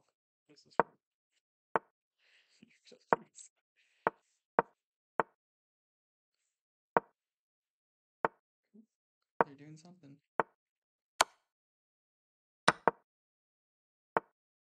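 Digital chess moves click sharply, one after another.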